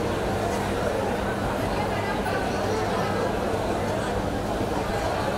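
A crowd of men and women chatter nearby.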